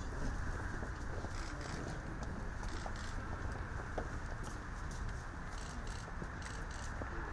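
Footsteps shuffle slowly on stone paving outdoors.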